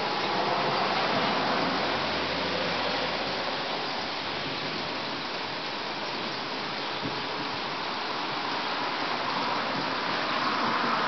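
Steady rain falls and patters outdoors.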